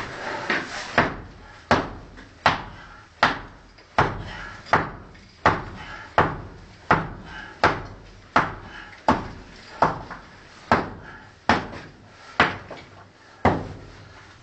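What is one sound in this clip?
A hammer knocks steadily against brickwork, echoing in an enclosed vault.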